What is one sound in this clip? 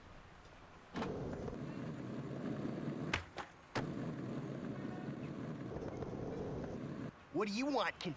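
Skateboard wheels roll steadily over pavement.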